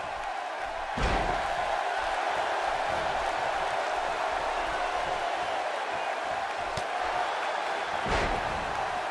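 A body slams hard onto a wrestling mat.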